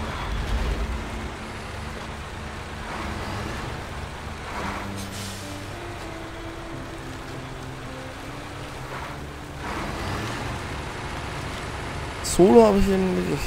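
A heavy truck engine rumbles and drones steadily.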